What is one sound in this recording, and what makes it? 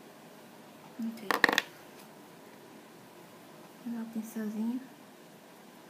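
A young woman speaks briefly and casually close by.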